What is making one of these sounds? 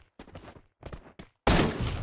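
Gunshots ring out in a video game.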